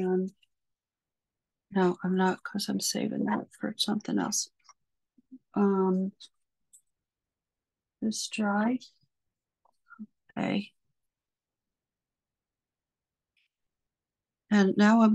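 A middle-aged woman talks calmly and warmly through a microphone on an online call.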